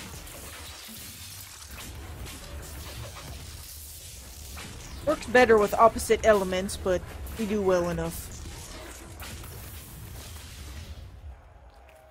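Magic spells crackle and whoosh in a game.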